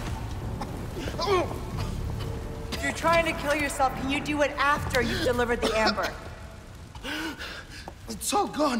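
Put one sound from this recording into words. A man gasps for air.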